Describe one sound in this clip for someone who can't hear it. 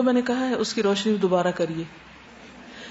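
A woman recites in a melodic voice close to a microphone.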